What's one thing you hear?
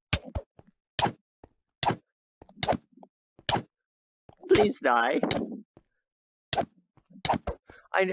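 A sword strikes a creature with quick, sharp hits.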